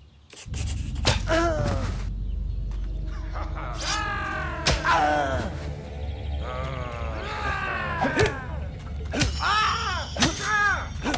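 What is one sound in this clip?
A man grunts and shouts while fighting.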